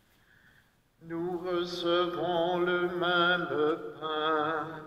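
A man sings slowly through a microphone in a large echoing hall.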